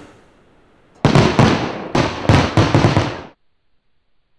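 Fireworks crackle and bang.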